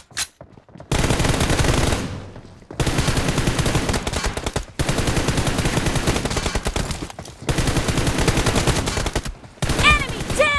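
An assault rifle fires in rapid bursts.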